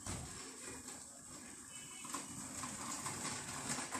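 A stretcher trolley's wheels rattle over rough ground.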